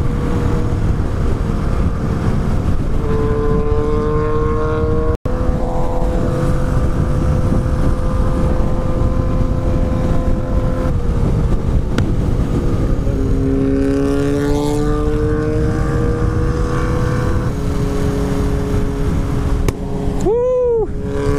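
A parallel-twin cruiser motorcycle runs at highway speed with a steady engine hum.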